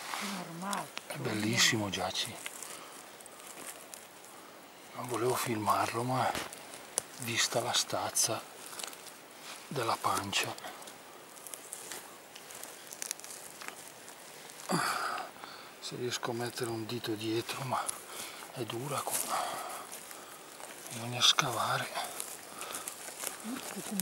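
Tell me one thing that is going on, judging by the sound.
A hand rustles dry needles and twigs on the ground.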